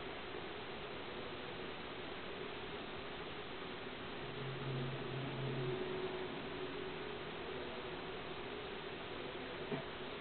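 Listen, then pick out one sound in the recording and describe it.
Soft electronic game music plays through a small television speaker.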